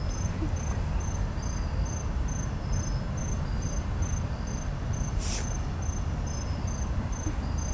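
A railway crossing bell rings in a fast, steady rhythm.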